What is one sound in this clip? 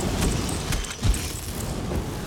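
Magic lightning crackles and zaps.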